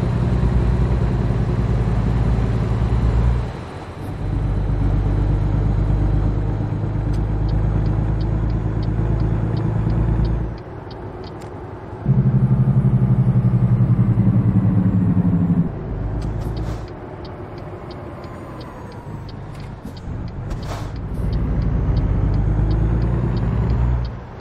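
A truck's diesel engine rumbles and drones, dipping briefly between gear shifts.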